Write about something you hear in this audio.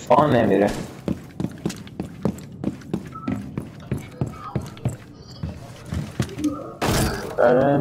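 Footsteps thud steadily across a hard floor.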